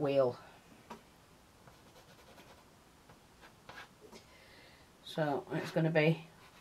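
A wooden stick scrapes lightly across a wooden board.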